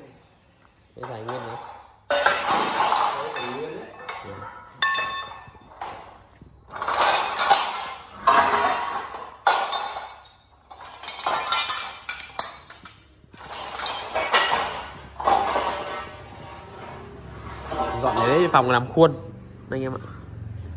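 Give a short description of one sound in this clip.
Metal bars clang and rattle against each other.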